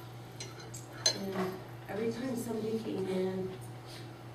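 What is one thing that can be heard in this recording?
A woman speaks calmly through a microphone in a room with some echo.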